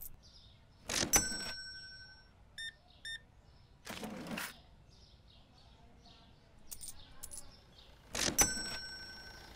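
A cash register rings with a bright chime.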